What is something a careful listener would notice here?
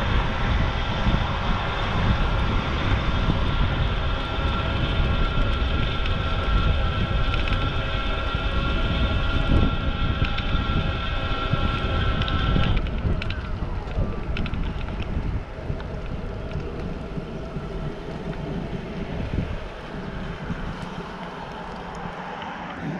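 Wind buffets the microphone.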